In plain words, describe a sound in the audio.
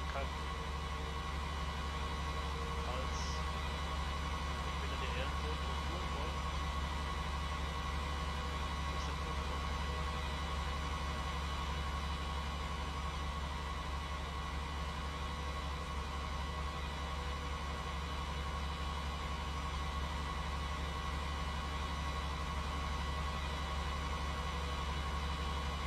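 A tractor engine drones steadily as it drives along.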